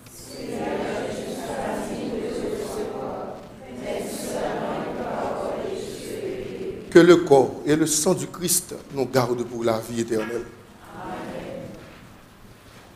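A congregation sings together in an echoing room.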